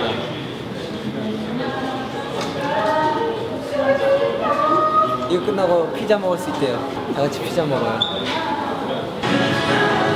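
A second young man speaks playfully, close by.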